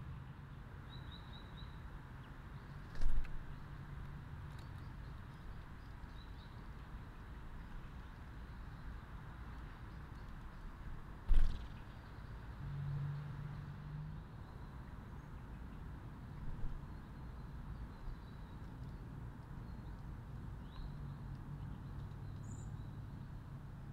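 A small bird chirps faintly nearby.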